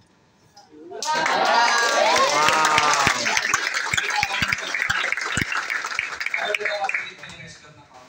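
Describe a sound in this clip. A crowd cheers and screams loudly.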